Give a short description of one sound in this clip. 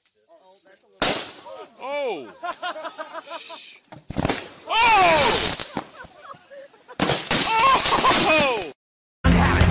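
An explosion bursts in water with a loud boom.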